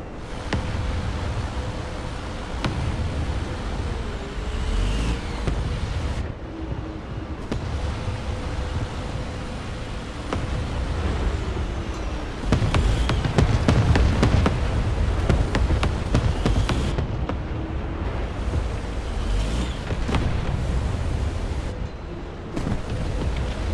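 A tank engine rumbles and roars steadily.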